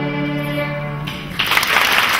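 A violin and piano play a final sustained chord in a hall.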